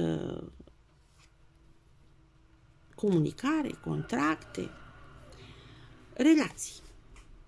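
A card is laid softly down on top of another card.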